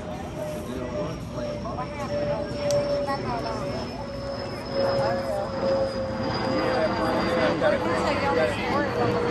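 A group of young women chant and cheer at a distance outdoors.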